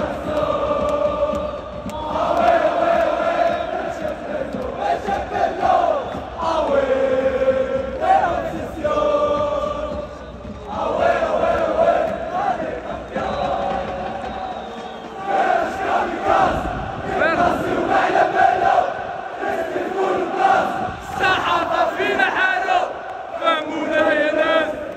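A huge crowd of fans chants loudly together in a large open stadium.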